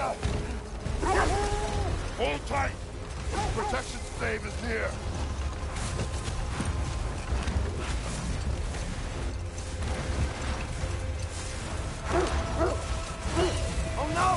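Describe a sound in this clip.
A sled slides and scrapes over snow.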